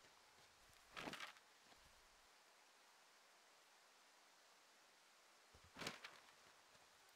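Paper rustles as a map is unfolded and folded.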